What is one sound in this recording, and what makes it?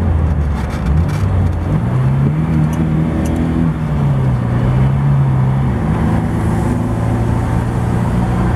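A car engine hums steadily, rising and falling slightly in pitch.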